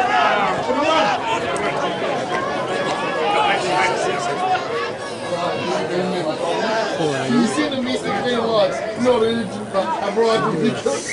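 A man shouts encouragement nearby.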